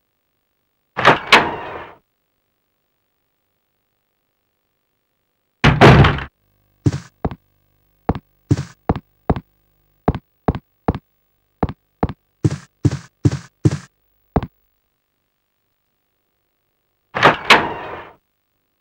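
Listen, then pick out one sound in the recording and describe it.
A heavy wooden door creaks open and thuds shut.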